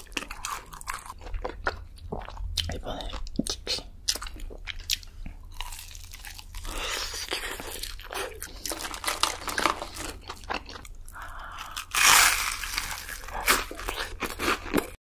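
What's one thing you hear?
A young woman chews crispy food close to a microphone.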